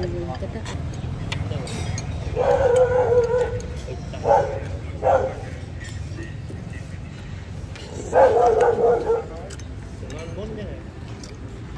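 Chopsticks and a spoon clink against a bowl.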